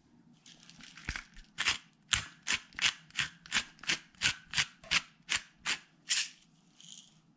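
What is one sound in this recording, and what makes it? A pepper grinder cranks with rapid rhythmic grinding clicks.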